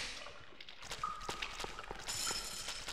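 Footsteps hurry across a hard floor.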